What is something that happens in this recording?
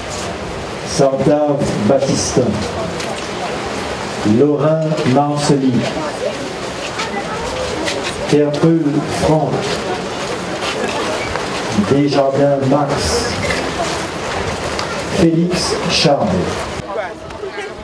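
A crowd sings a hymn together outdoors.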